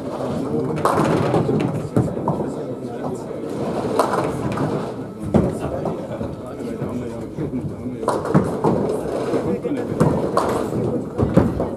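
A bowling ball rumbles along a lane in an echoing hall.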